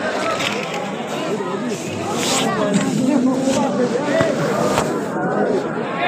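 Clothing rubs and rustles right against the microphone.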